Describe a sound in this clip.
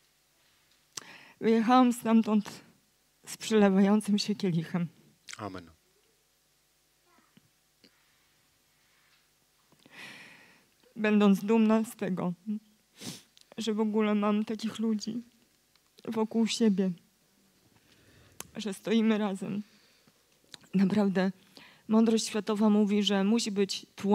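A woman speaks with animation into a microphone in a large echoing room.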